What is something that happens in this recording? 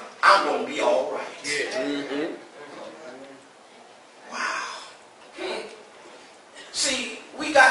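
A man preaches with animation into a microphone in an echoing room.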